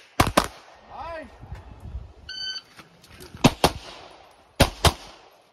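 Pistol shots crack in quick pairs outdoors, echoing briefly.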